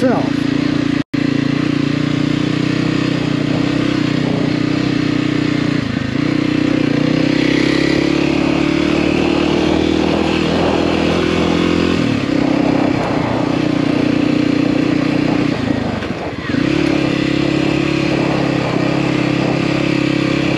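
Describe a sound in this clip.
Tyres crunch over loose dirt and gravel.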